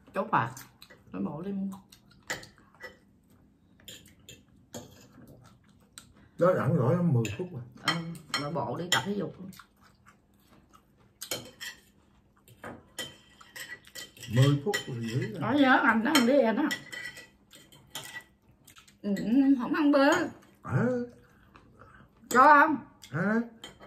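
Cutlery clinks and scrapes on plates.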